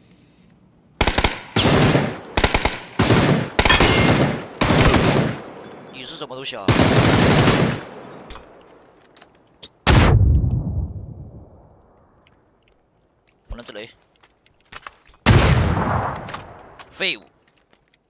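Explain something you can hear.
Rapid gunfire bursts loudly, with sharp echoing cracks.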